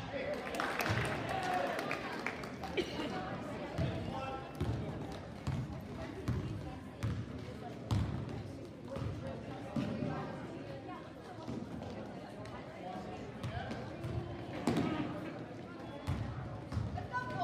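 A basketball bounces repeatedly on a wooden floor in a large echoing gym.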